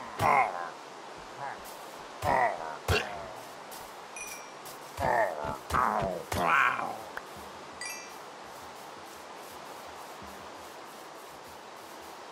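Rain hisses steadily.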